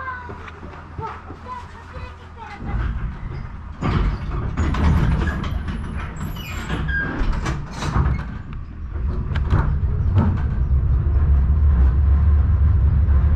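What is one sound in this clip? A vehicle rumbles steadily as it drives along a road.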